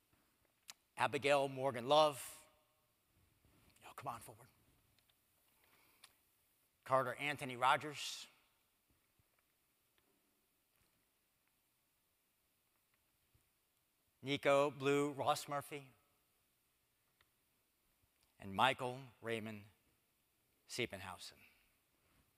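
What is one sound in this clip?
A middle-aged man speaks calmly through a microphone in a large echoing room.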